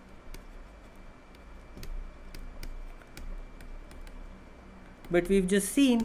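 A pen taps and scratches on a tablet.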